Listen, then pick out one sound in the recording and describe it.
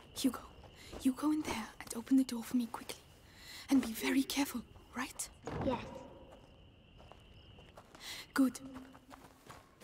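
A young woman speaks quietly and urgently, close by.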